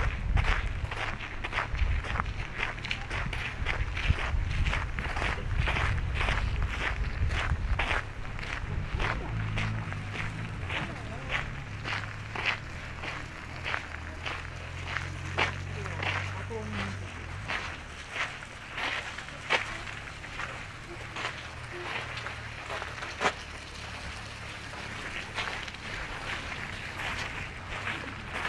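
Footsteps crunch steadily on gravel close by.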